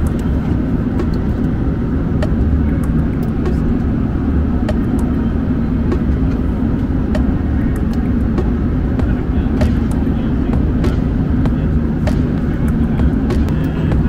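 A plastic water bottle crinkles in a hand.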